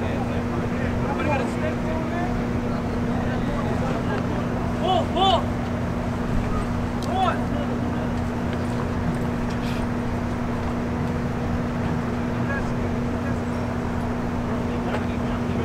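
A tarp rustles and flaps as men pull it.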